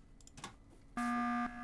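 An alarm blares from a game as an emergency meeting is called.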